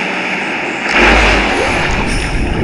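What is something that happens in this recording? A large splash sounds as something plunges into water.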